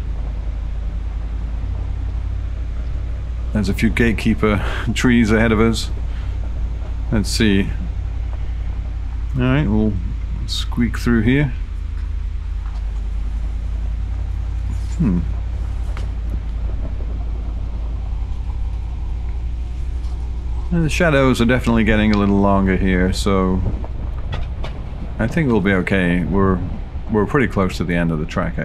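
A car engine rumbles low and steady.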